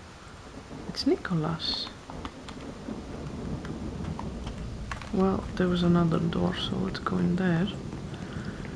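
A young woman talks with animation into a nearby microphone.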